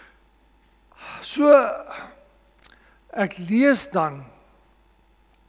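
A middle-aged man preaches with emphasis through a microphone.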